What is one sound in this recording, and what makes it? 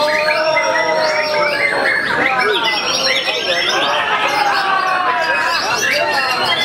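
Many caged songbirds chirp and sing loudly all at once.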